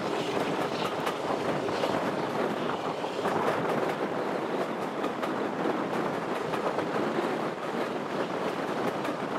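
Train carriages rattle and clatter steadily along the track.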